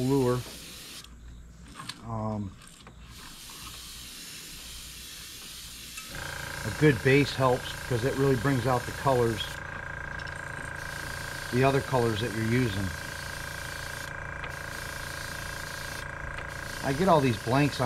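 An airbrush hisses softly as it sprays.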